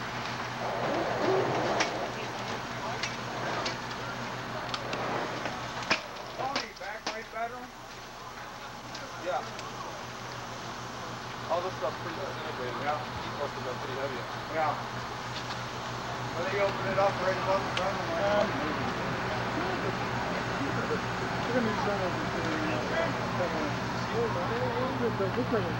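A fire truck engine idles with a steady low hum.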